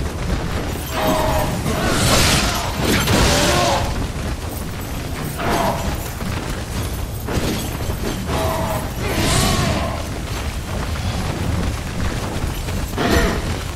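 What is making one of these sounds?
A blade swishes and strikes in bursts.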